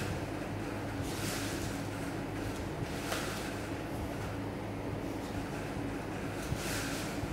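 Twine rustles and scrapes as it is pulled and wound by hand.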